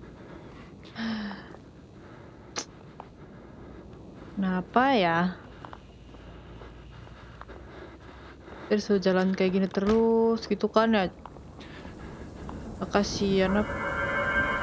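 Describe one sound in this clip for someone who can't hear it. A young woman talks expressively into a close microphone, in short bursts.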